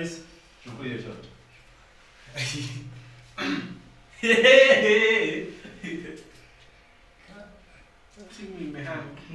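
Young men talk with animation nearby.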